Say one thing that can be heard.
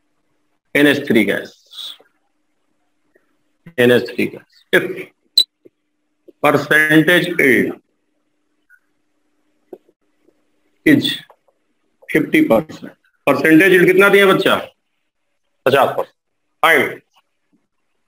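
A man speaks nearby in short bursts, explaining calmly.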